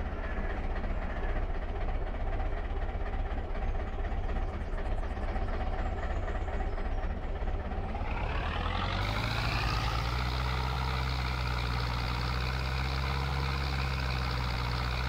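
A tractor engine idles with a low rumble, then revs up and drones steadily as the tractor drives off.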